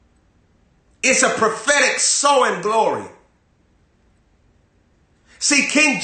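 A young man speaks forcefully and with animation, close to a microphone.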